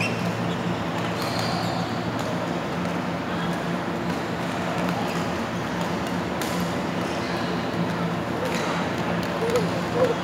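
Rackets strike shuttlecocks with sharp pops in a large echoing hall.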